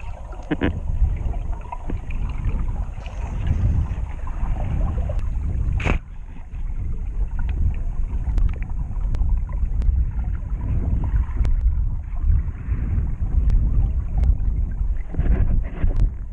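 A snorkeler's breath bubbles and gurgles underwater.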